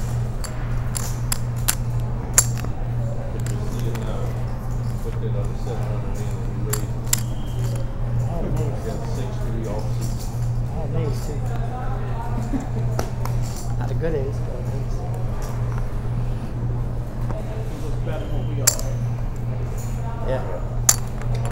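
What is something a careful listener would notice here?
Poker chips click and clatter on a table.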